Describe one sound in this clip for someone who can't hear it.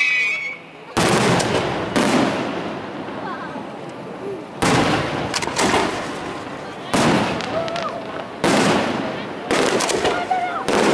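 Fireworks explode with loud booming bangs that echo away.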